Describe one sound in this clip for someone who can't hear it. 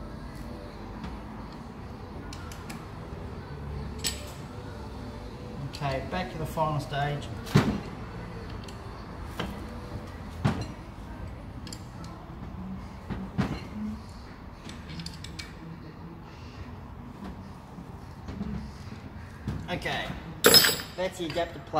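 Metal parts clink and knock as a man handles them.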